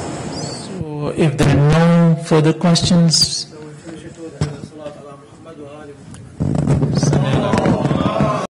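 A middle-aged man speaks into a microphone, heard through a loudspeaker in a room with some echo.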